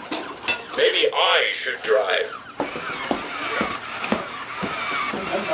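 A toy robot's motors whir as it moves.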